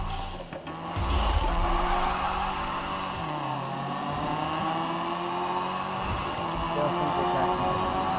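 A car engine roars loudly as the car speeds away.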